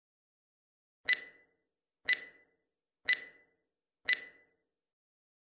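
A countdown timer beeps once each second.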